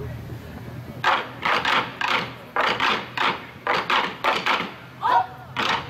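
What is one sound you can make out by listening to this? A group of drummers pounds large drums in loud, rhythmic beats outdoors.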